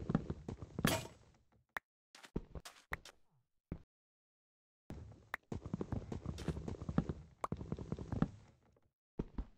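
Wooden blocks crack and break with quick chopping knocks in a video game.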